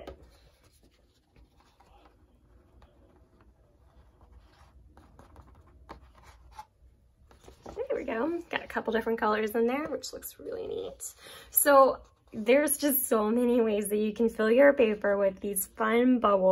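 A sheet of paper rustles as hands press it down and peel it up.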